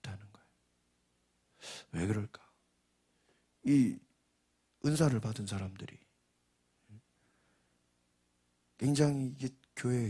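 A man speaks calmly into a microphone, heard through a loudspeaker, pausing between phrases.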